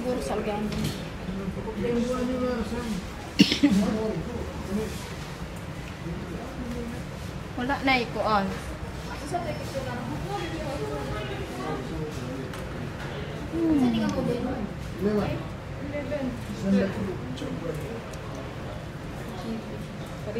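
Several adults chatter nearby in a busy indoor space.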